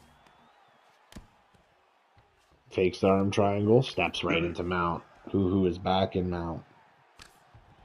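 Punches land on a body with dull thuds.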